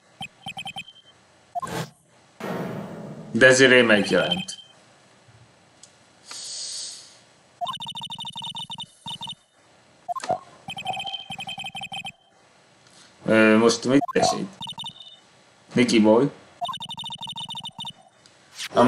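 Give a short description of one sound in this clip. Short electronic blips chatter rapidly as game text scrolls.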